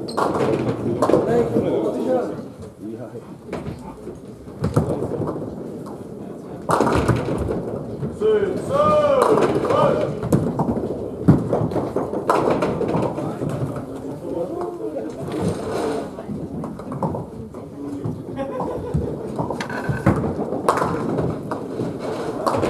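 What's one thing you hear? Bowling balls roll down wooden lanes with a low rumble.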